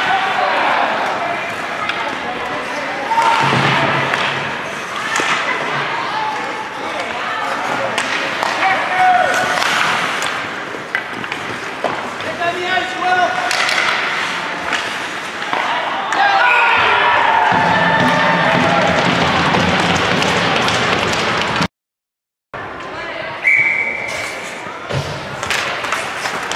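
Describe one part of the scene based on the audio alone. A crowd of spectators cheers and shouts in an echoing rink.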